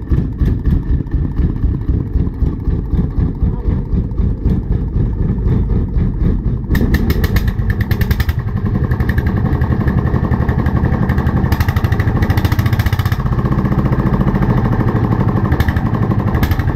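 A single-cylinder diesel engine chugs loudly and steadily close by.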